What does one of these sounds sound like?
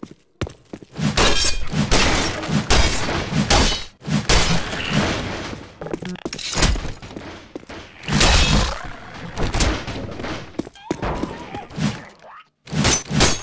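Wooden crates crack and splinter under heavy blows.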